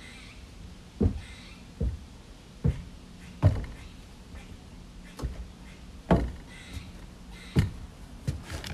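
Footsteps thump on a wooden deck.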